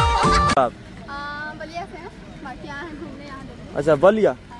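A young woman talks cheerfully close by.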